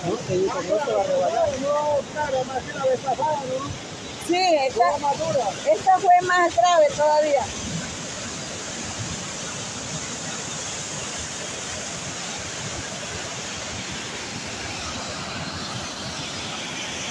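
Muddy floodwater rushes and roars steadily.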